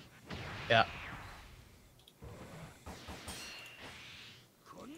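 Game sound effects of sharp magical strikes whoosh and crackle.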